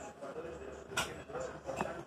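A dog laps at a dish.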